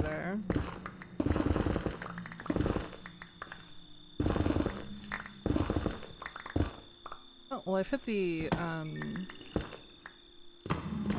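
Stone blocks crumble and break in quick rough bursts.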